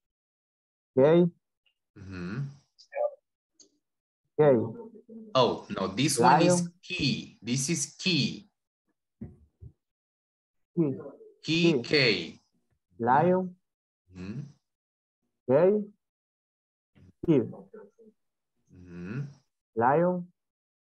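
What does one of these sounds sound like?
A woman speaks over an online call, with short pauses.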